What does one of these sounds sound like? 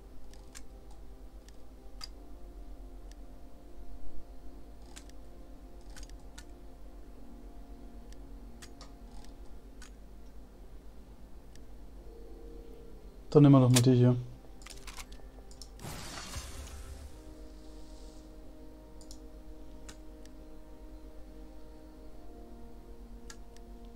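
Short soft menu clicks tick now and then.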